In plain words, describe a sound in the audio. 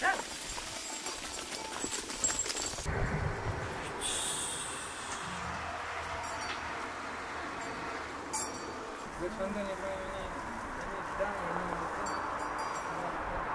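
Hooves of sheep and goats patter and shuffle on a stony dirt path.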